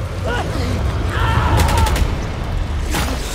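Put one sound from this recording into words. A young man cries out in pain.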